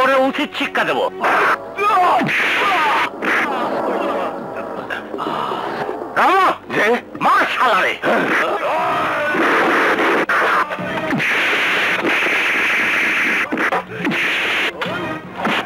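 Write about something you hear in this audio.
Men shout during a fight outdoors.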